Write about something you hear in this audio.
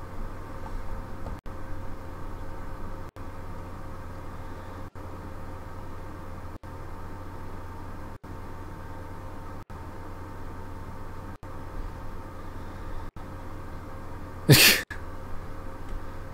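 Machines hum steadily.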